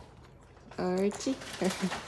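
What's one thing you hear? A small dog chews a treat.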